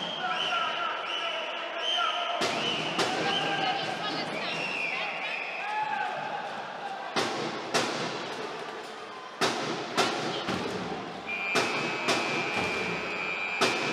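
A large crowd cheers and chants in an echoing hall.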